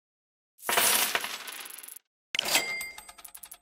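A game's reward chime rings out with a sparkling whoosh.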